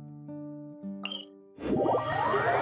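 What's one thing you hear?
Soft synth tones play briefly.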